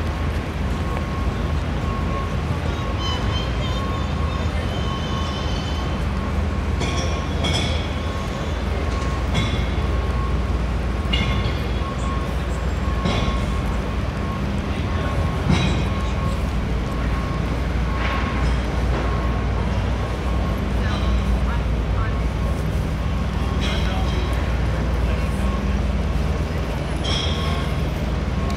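Traffic rumbles low in the street outdoors.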